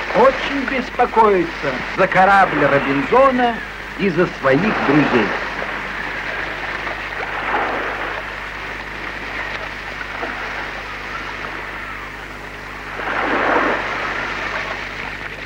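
Waves crash and surge against rocks.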